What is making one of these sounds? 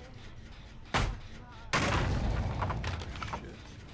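Wood cracks and splinters loudly as something is smashed.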